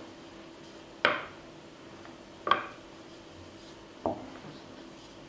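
A rolling pin rolls over a soft sheet of paste with soft thumps.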